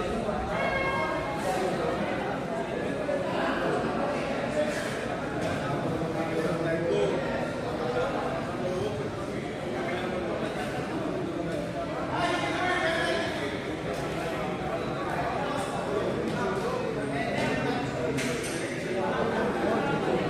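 A crowd of young people chatters throughout in an echoing gym.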